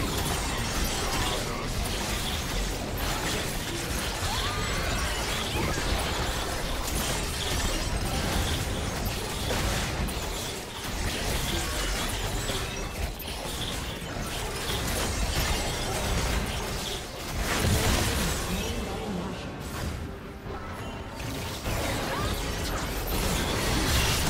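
Game spell effects and blows crash and whoosh during a fight.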